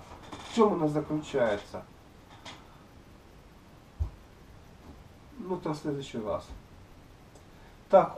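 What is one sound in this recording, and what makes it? An older man talks with animation close to the microphone, in short bursts.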